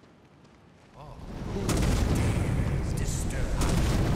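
A spell crackles and buzzes with electric sparks.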